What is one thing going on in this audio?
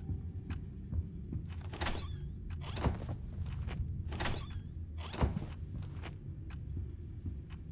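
Footsteps thud slowly across a wooden floor.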